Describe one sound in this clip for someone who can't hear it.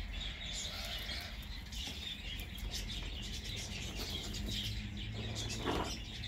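A small rabbit chews and tugs at a piece of cloth.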